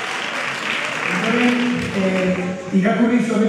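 A woman speaks through a microphone in a large hall.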